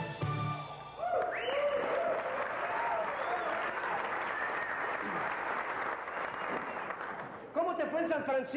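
An audience cheers and applauds.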